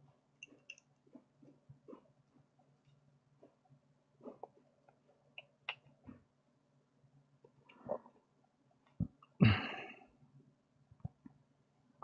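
Small plastic parts click and rattle as they are handled close by.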